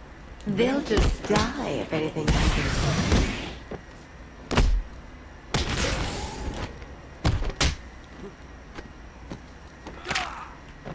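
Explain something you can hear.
Heavy punches land with sharp thuds.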